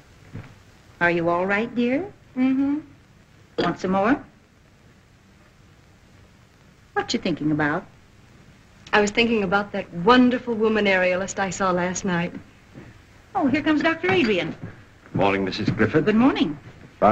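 An elderly woman speaks calmly.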